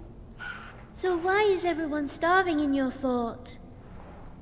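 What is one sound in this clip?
A young girl speaks brightly and cheerfully, close by.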